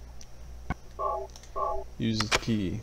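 Two short electronic menu beeps sound.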